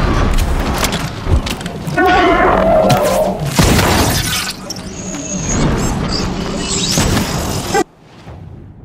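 A weapon fires with loud bursts and crackling blasts.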